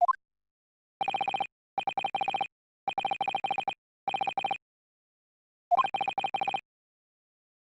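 Rapid electronic blips chirp in quick bursts.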